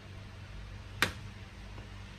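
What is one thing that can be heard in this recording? A plastic juicer clicks sharply against a tray.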